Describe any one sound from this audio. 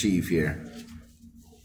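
An elderly man speaks calmly through an online call.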